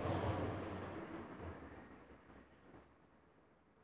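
A middle-aged man speaks quietly close to a microphone.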